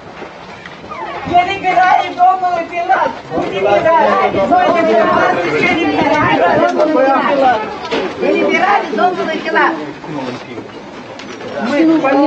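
A crowd of men and women talk loudly and over each other close by.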